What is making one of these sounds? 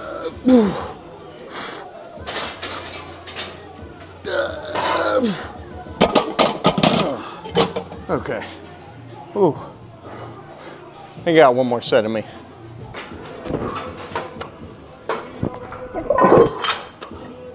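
A young man grunts and groans with strain, close by.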